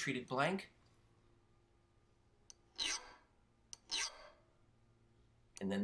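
A metal point scratches lightly along a steel blade.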